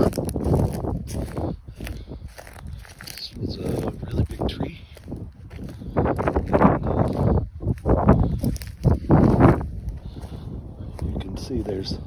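Footsteps crunch over dry twigs and brush outdoors.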